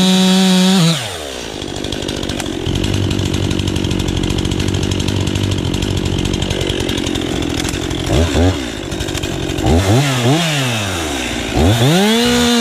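A chainsaw engine idles and sputters.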